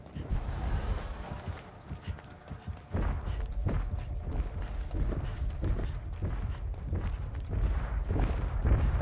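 A man talks into a close microphone with animation.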